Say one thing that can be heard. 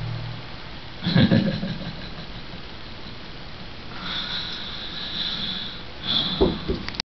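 A young man speaks close into a microphone.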